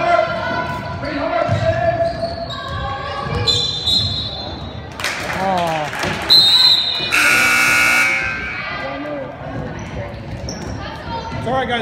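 Sneakers squeak on a wooden floor in a large echoing hall.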